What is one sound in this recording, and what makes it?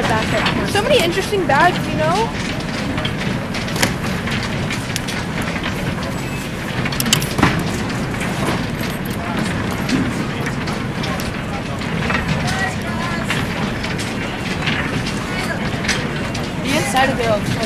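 A baggage carousel rumbles steadily as it turns.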